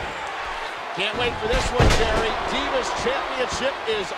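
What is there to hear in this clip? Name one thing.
A body slams down hard onto a wrestling ring mat.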